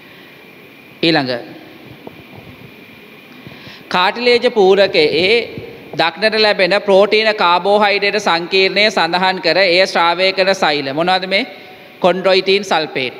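A man reads aloud through a microphone.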